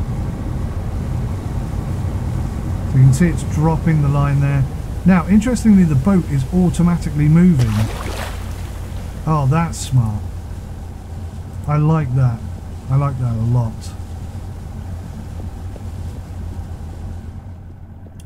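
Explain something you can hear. A boat engine rumbles low and steadily.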